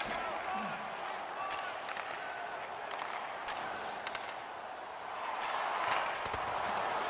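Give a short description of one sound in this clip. Hockey sticks click sharply against a puck.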